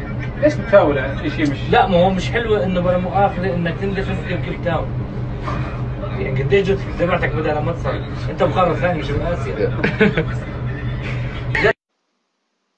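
A man talks with animation over a noisy background.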